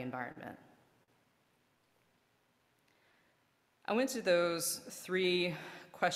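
A woman speaks calmly into a microphone, pausing between phrases.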